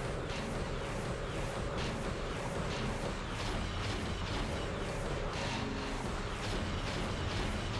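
Rockets whoosh past.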